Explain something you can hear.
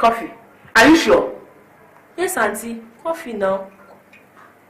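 A woman speaks briefly in short bursts.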